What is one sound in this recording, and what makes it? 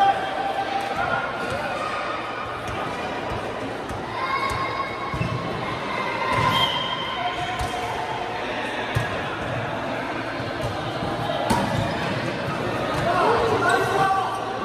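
Several young men call out and chat in a large echoing hall.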